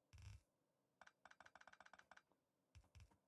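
Quick footsteps patter on dry ground.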